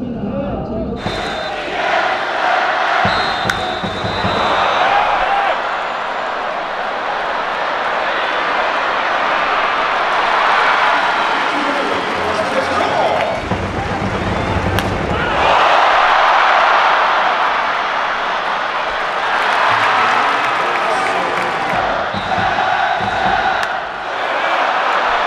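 A large crowd cheers and chants in a big open stadium.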